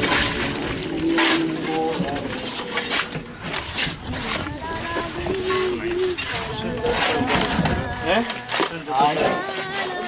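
Several men talk over one another nearby, outdoors.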